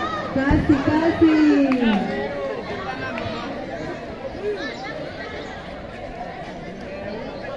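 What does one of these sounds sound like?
A crowd of children chatters and shouts outdoors.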